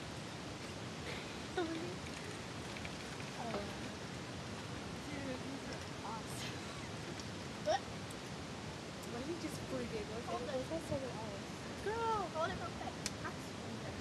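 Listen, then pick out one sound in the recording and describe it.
A girl talks and laughs close by.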